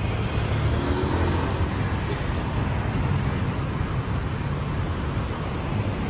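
A motor scooter passes close by.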